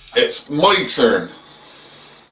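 A man speaks close to the microphone.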